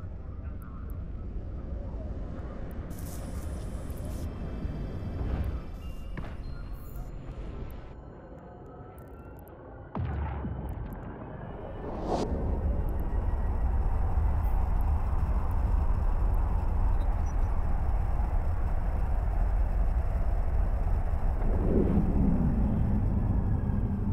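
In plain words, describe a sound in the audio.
A deep spaceship engine rumbles steadily, growing louder partway through.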